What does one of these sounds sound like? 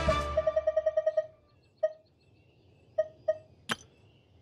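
Short electronic beeps and chimes sound in quick succession.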